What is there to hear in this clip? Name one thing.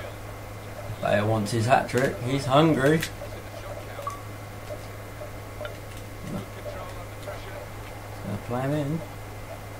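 A young man talks into a microphone, close up.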